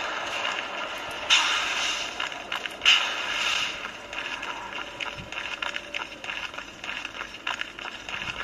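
Video game sword clashes and effects play from a small phone speaker.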